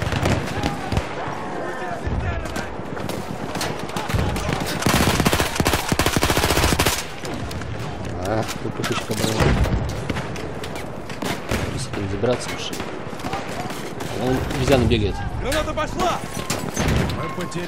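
Gunshots crack in quick bursts, some close and some farther off.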